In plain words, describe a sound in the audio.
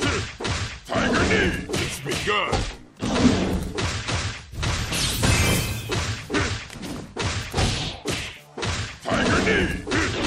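Energy blasts burst with loud whooshes.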